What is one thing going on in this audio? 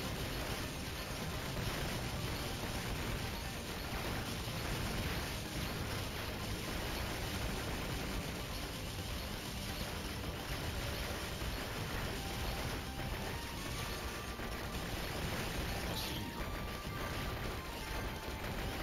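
Rapid video game gunfire and explosions boom continuously.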